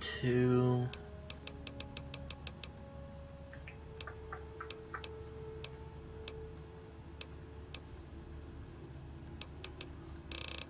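Short interface clicks tick repeatedly as a menu selection moves.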